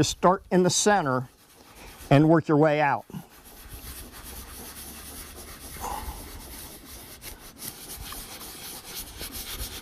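A hand rubs a sticker against window glass.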